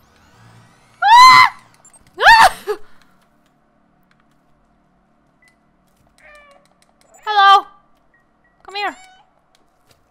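A cat meows loudly several times.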